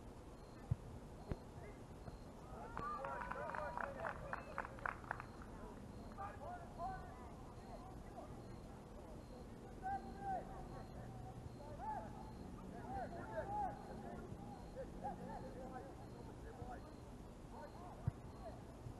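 Young men shout and call out in the distance across an open field.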